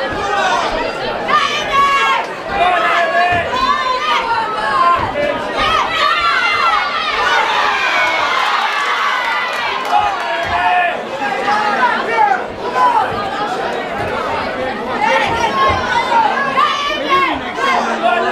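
A crowd shouts and cheers loudly in a large hall.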